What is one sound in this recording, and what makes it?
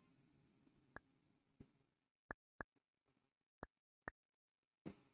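Short, sharp menu clicks tick now and then.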